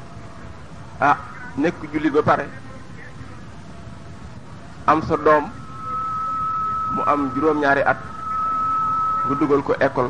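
A man speaks into a microphone in short, measured phrases, with pauses between them.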